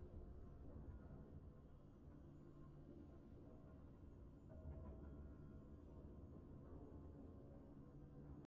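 Triumphant game music plays steadily.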